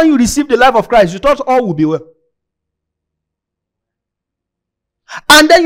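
A young man speaks with animation through a headset microphone, pausing in between.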